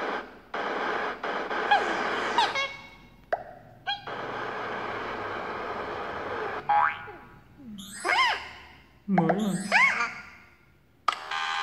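Cartoon sound effects squeak and whoosh from a small tablet speaker.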